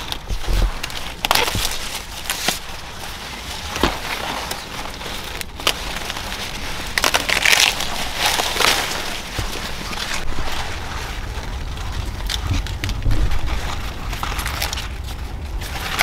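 Corn leaves rustle and crackle as hands pull at the stalks.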